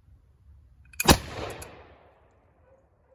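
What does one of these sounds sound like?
A gunshot cracks loudly outdoors and echoes away.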